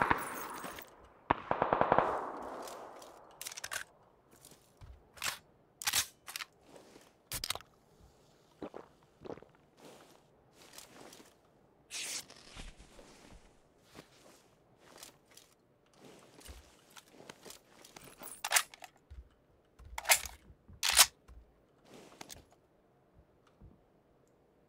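Gear is picked up with short rustling clicks, again and again.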